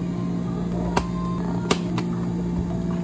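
Plastic lids snap onto cups with sharp clicks.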